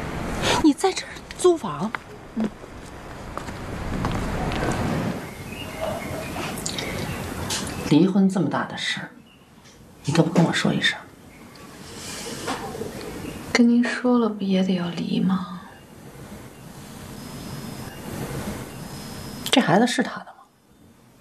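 A middle-aged woman speaks with reproach, close by.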